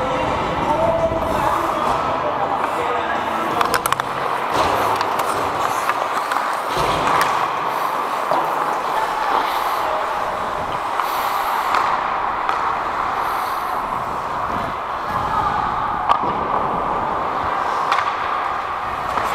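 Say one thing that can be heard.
Skate blades scrape and hiss across the ice in a large echoing hall.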